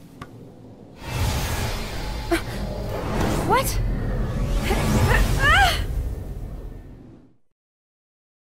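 A bright burst of magic roars and swirls loudly, then cuts off.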